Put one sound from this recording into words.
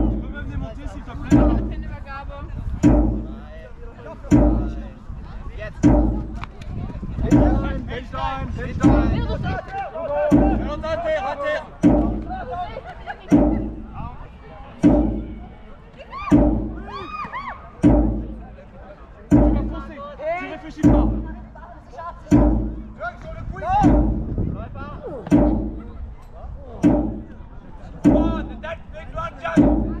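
Players call out to each other across an open field outdoors.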